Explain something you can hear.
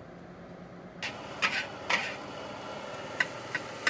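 A metal spatula scrapes and clanks in a wok.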